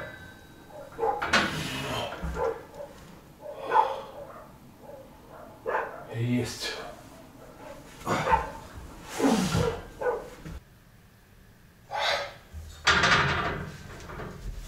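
An elderly man breathes hard and grunts with effort nearby.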